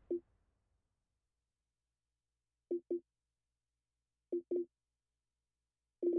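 Short soft menu blips sound as a selection moves.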